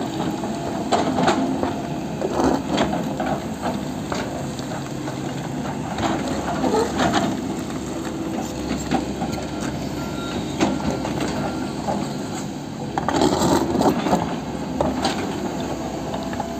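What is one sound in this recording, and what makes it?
Rocks and soil clatter and tumble from an excavator bucket.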